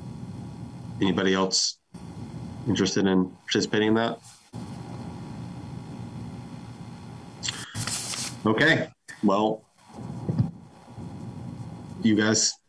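A young man speaks calmly in short phrases over an online call.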